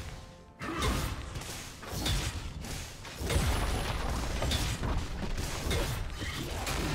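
Magic blasts and weapon hits burst in a fast fight.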